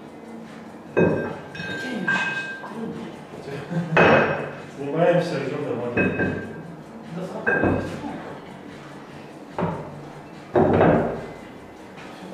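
Weight plates clank against a barbell.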